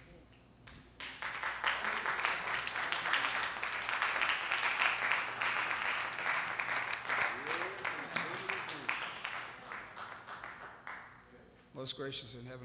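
A congregation claps hands in a large room.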